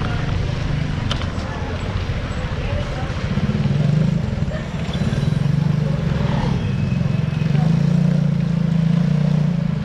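A motorcycle engine putters steadily close by.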